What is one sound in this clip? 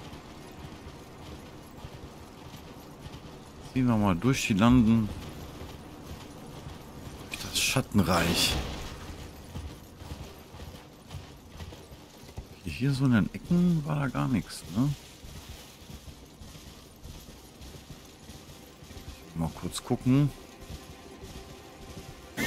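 A horse gallops with thudding hooves.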